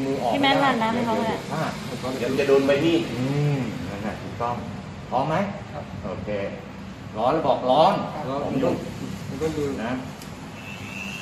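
Several men talk nearby with animation.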